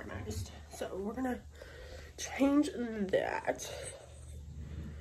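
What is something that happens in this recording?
A young woman talks close by, casually.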